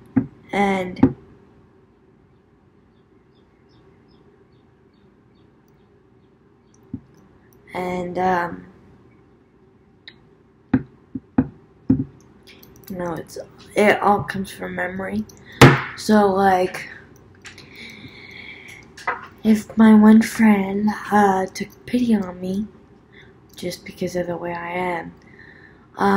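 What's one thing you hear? A young woman speaks casually and close to a microphone, with pauses.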